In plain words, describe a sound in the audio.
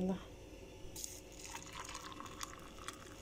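Water pours from a kettle into a cup.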